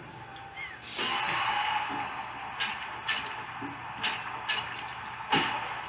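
A game crowd cheers loudly from a television.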